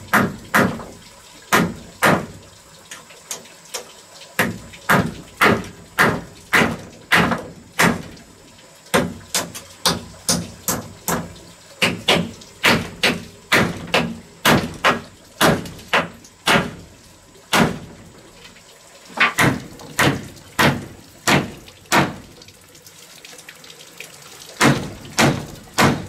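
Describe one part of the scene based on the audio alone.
A hammer knocks repeatedly on wood.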